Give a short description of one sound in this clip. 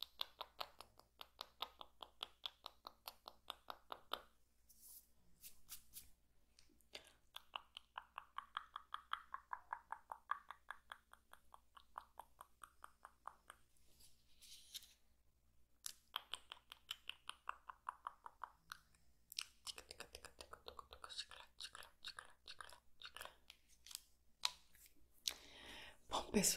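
A flashlight switch clicks over and over in a quick rhythm.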